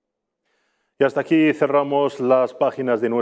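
A man speaks clearly and steadily into a microphone, like a news presenter.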